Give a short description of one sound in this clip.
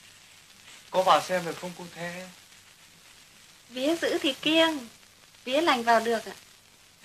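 A young woman sings softly nearby.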